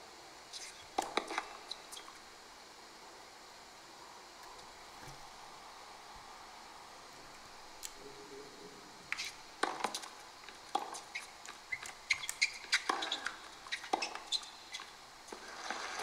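A tennis ball is struck with sharp pops.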